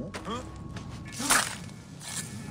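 A sword clangs against a shield in a fight.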